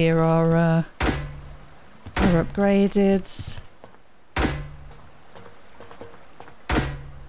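A hammer strikes a metal door with loud knocks.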